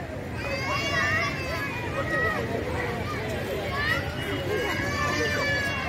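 Children shout and chatter nearby outdoors.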